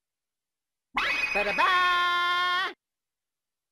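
A game plays a bright, ringing jingle.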